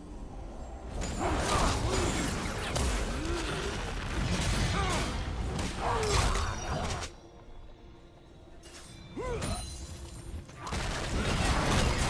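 Game combat effects crackle, whoosh and burst as characters fight.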